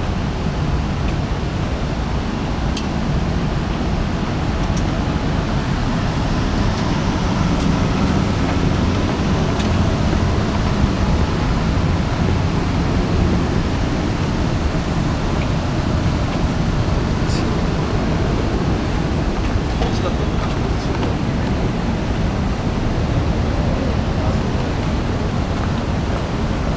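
Steady city traffic rumbles below, heard outdoors.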